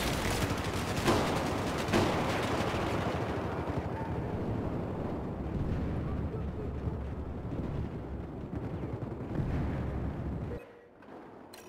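Explosions boom nearby with a deep, rolling rumble.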